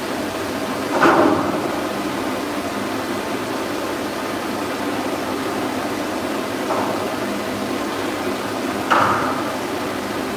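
A dog barks sharply a few times.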